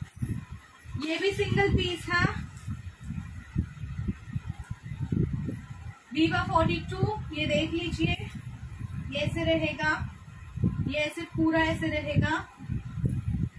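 A young woman speaks close by, explaining with animation.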